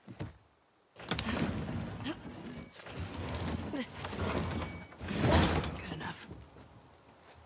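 A garage door rattles and rumbles as it is pushed up.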